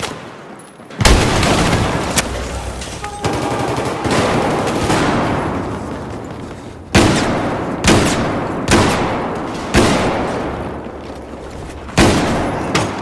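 Heavy blasts boom and echo.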